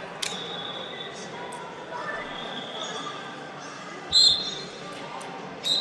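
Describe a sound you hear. Voices murmur and chatter in a large echoing hall.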